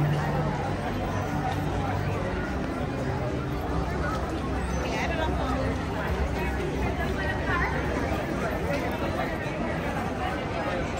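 A crowd of people chatters all around outdoors.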